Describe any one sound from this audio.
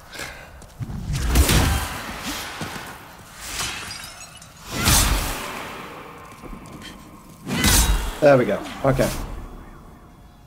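A heavy sword swings through the air with loud whooshes.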